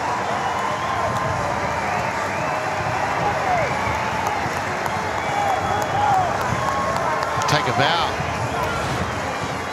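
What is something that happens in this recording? A large stadium crowd cheers and chants.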